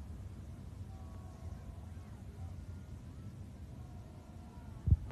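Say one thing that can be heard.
Players call out faintly across an open field.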